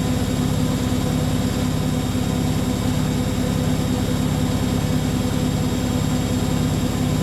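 A washing machine drum spins with a steady rhythmic hum and rumble.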